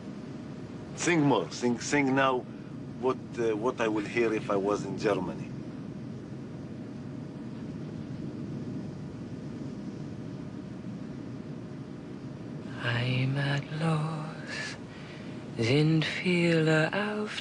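A woman speaks tensely nearby.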